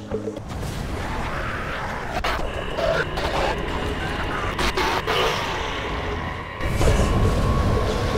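Blades slash and thud against bodies in a fight.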